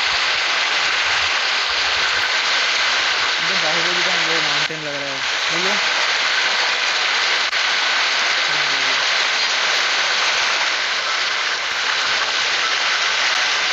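Water rushes and roars steadily.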